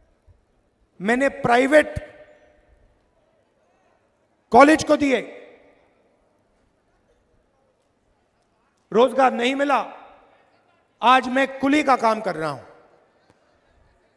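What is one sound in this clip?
A man speaks forcefully through a microphone and loudspeakers, in short bursts with pauses.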